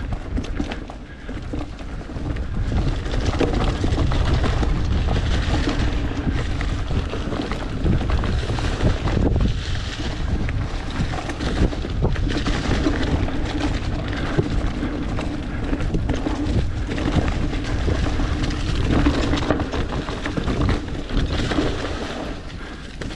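A bicycle frame and chain rattle over bumps.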